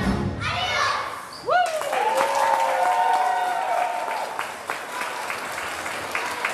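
A crowd of children sing and shout together in a large echoing hall.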